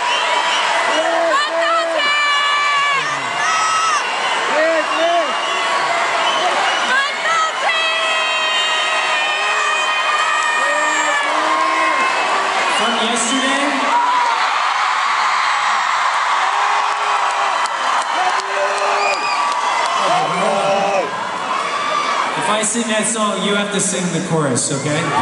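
A man sings through loudspeakers in a large echoing hall.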